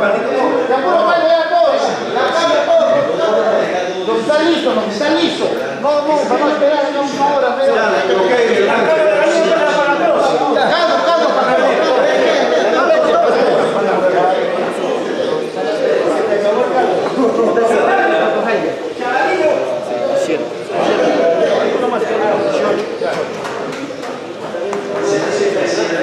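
Several men talk at once across a room.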